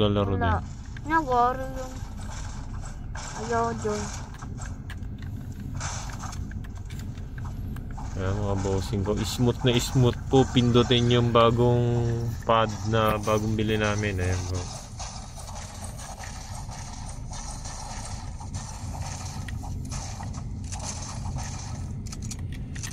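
Game sounds play from a handheld game console's small speakers.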